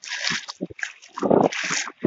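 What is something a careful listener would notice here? A sandal splashes through shallow water on pavement.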